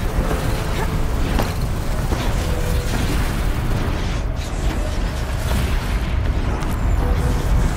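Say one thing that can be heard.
Hands grab and pull along metal ledges during a climb.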